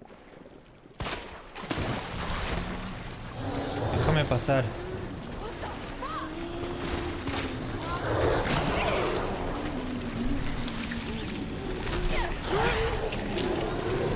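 A monster growls and roars loudly.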